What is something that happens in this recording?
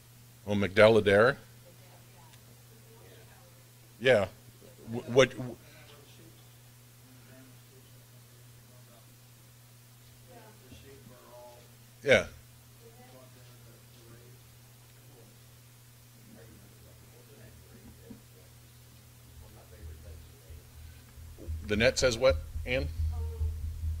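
A middle-aged man speaks into a microphone in short bursts, with long pauses.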